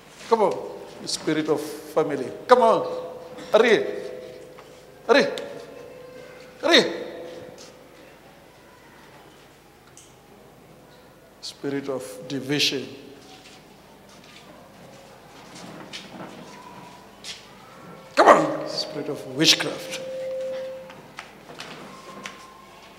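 A man shouts forcefully in short bursts through a microphone and loudspeakers, echoing in a large hall.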